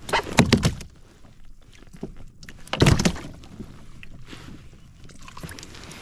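A fish splashes and flops against the deck of a kayak.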